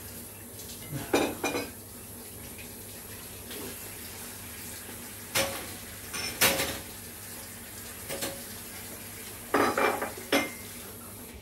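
A man eats with a spoon, clinking a bowl.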